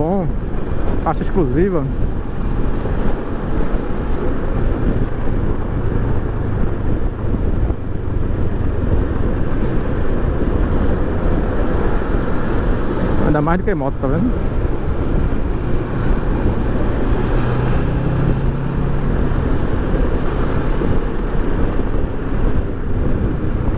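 Wind rushes loudly past a moving motorcycle rider.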